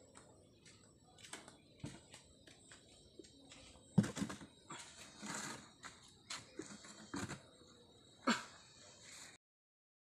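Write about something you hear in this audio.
A plastic chair knocks and scrapes on the ground.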